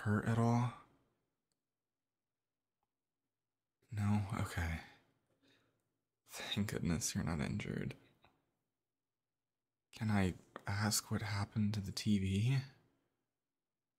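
A young man speaks softly and soothingly, close to a microphone, with long pauses.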